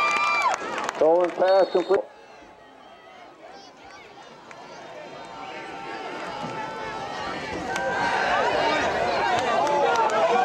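A crowd of spectators cheers and shouts outdoors, growing louder.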